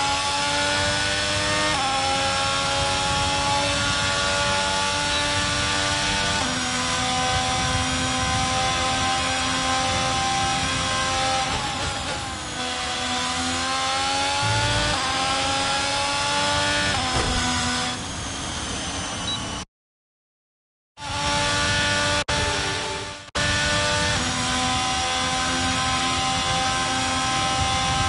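A racing car engine screams at high revs, shifting gears and rising and falling in pitch.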